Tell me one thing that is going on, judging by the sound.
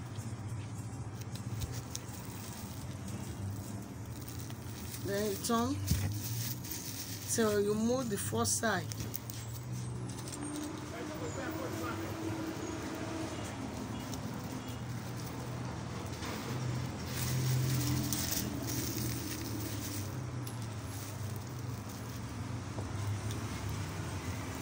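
Stiff woven fabric rustles and crinkles under hands.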